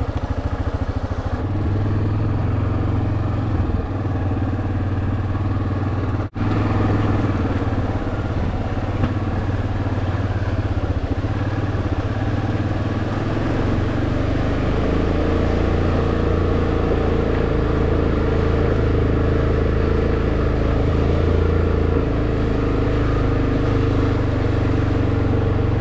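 An off-road quad engine rumbles steadily up close.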